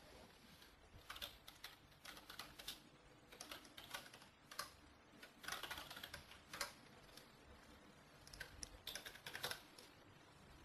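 Keys on a keyboard clack softly in short bursts.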